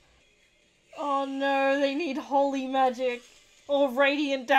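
A young woman laughs, close to a microphone.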